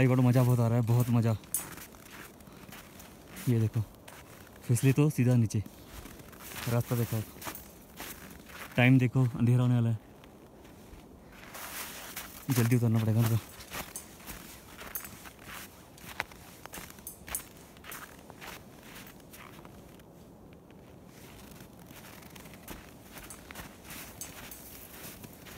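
Footsteps crunch in snow close by.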